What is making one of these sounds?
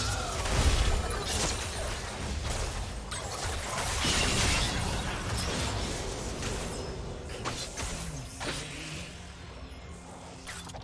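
Game weapons clash and strike with sharp hits.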